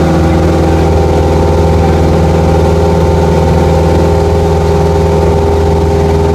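A single-engine propeller plane drones in cruising flight, heard from inside the cabin.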